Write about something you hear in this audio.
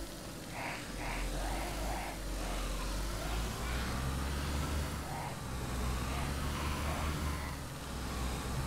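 A car engine runs and revs as the car drives.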